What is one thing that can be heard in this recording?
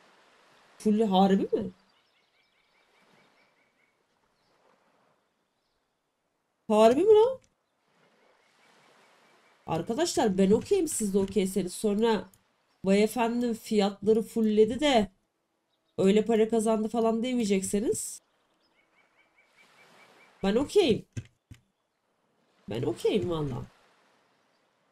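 A young woman talks into a nearby microphone in short bursts, calmly.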